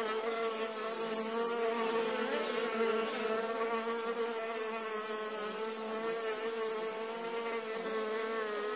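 A bee fly buzzes steadily as it hovers close by.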